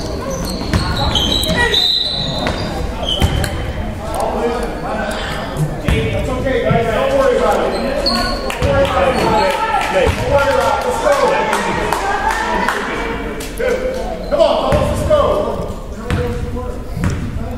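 Young players and spectators shout and cheer in a large echoing gym.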